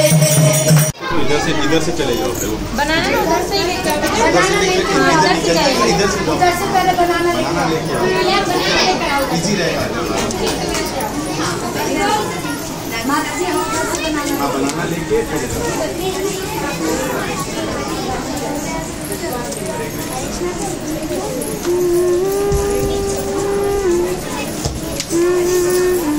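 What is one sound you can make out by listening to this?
A crowd of girls chatters and calls out loudly nearby.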